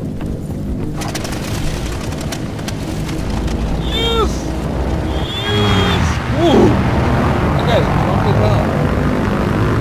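A propeller plane engine drones and grows louder.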